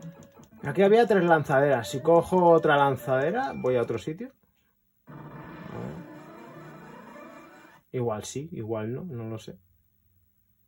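Electronic video game music plays a bouncy, beeping melody in short bursts.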